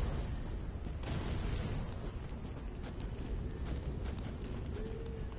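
Armoured footsteps clank on the ground.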